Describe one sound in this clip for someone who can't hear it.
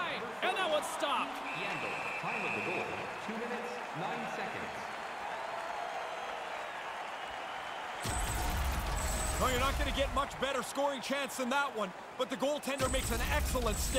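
A large crowd cheers in an echoing arena.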